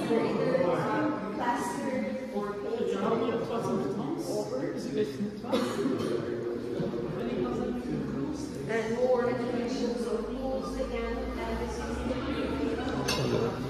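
A crowd of men and women chat and murmur nearby in an echoing hall.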